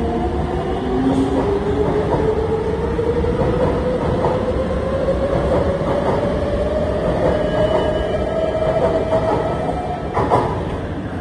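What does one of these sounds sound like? A train's electric motor whines, rising in pitch as the train pulls away.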